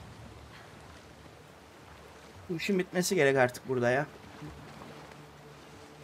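Water sloshes as a person wades through the sea.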